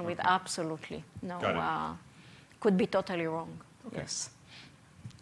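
A woman speaks with animation to a small audience in a room.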